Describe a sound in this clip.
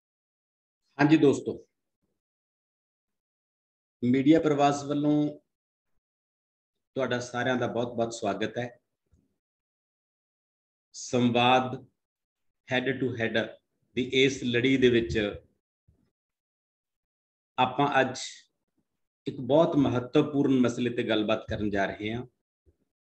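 A middle-aged man speaks calmly in short phrases over an online call.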